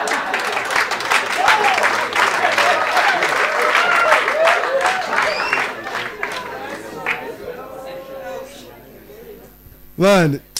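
An audience laughs and applauds loudly, then dies down.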